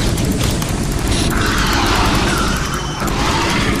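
Weapons fire and explosions crackle in short bursts.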